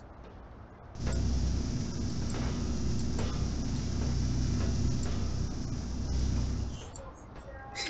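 An electronic beam hums steadily, then cuts off.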